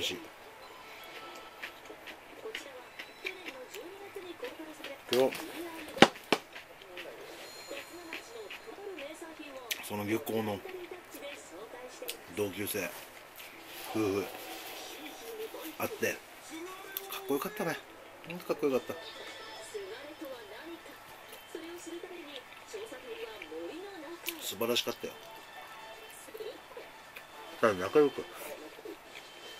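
A man chews and smacks his lips.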